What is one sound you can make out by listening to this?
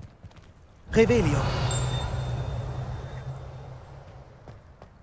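A magic spell bursts with a loud whoosh and a fading hum.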